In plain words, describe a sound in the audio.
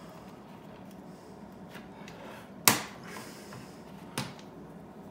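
Keys on a keyboard click and clack as they are pressed.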